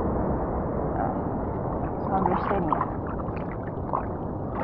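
Water splashes briefly close by.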